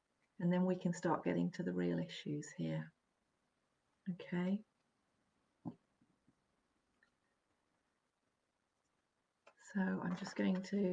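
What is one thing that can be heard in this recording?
A middle-aged woman speaks warmly and calmly into a microphone close by.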